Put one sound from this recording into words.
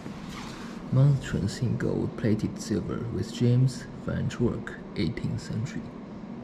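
Footsteps thud on a wooden floor close by.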